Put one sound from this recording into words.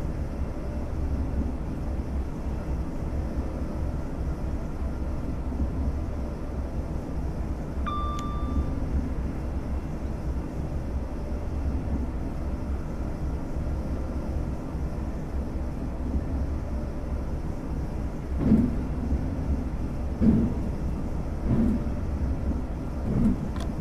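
An electric train rumbles steadily along the rails.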